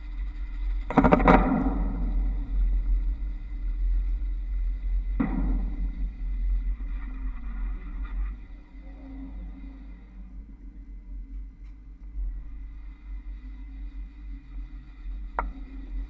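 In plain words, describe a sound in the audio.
Trolley poles clack sharply over overhead wire junctions.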